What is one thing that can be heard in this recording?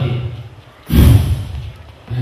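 A body thuds onto a hard floor.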